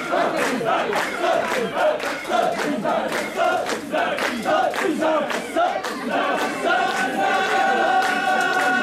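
A crowd of men chant loudly in rhythm, close by.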